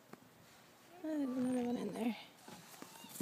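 A dog whines in a high, wavering voice.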